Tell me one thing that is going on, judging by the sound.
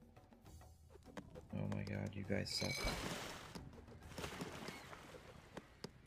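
Waves lap gently against a shore.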